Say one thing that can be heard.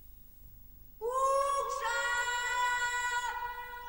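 A man shouts a long, loud, drawn-out call across open water outdoors.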